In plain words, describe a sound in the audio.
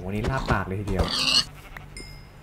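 A pig squeals sharply when struck.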